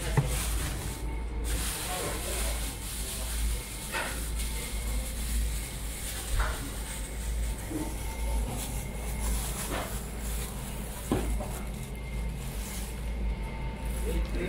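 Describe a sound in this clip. A plastic bag rustles and crinkles as it is knotted.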